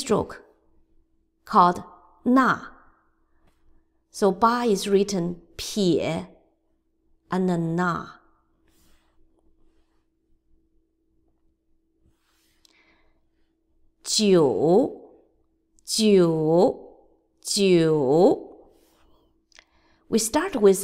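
A middle-aged woman speaks slowly and clearly over an online call, pronouncing single words with pauses between them.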